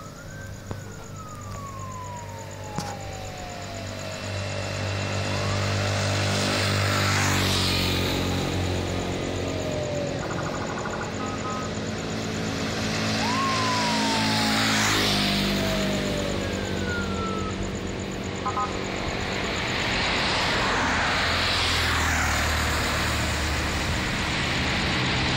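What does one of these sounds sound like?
Motorbikes pass by one after another, their engines rising and fading.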